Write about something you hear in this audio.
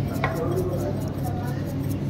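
A metal shaker rattles as it is shaken.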